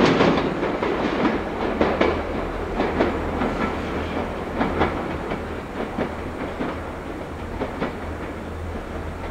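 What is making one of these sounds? An electric train rumbles slowly along the tracks toward the listener.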